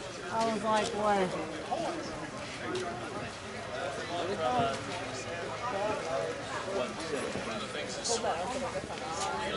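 Several men call out and talk outdoors at a distance.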